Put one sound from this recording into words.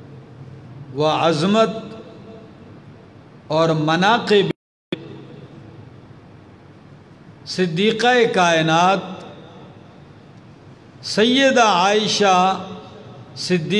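A man chants in a melodic voice through a microphone, in bursts with pauses between.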